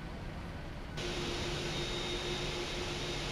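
Jet engines roar loudly with a high whine outside the aircraft.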